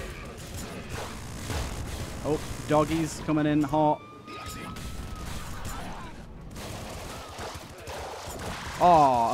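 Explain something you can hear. Rapid video game gunfire and fiery blasts crackle and pop.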